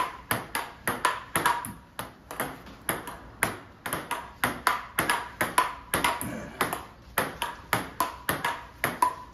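A ping-pong ball clicks rapidly against a paddle and table in a quick rally.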